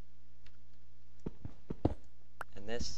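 A pickaxe chips at stone with short dull knocks.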